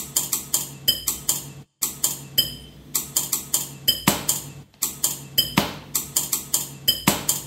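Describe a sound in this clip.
Electronic music plays with a quick, steady beat.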